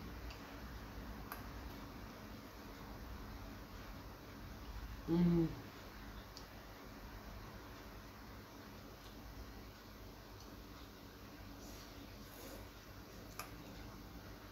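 A fork clinks against a bowl.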